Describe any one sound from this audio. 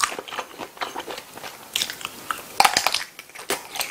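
A young man bites into a sausage with a crunchy snap.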